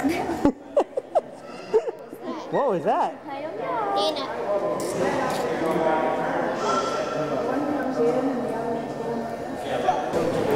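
A toddler babbles close by.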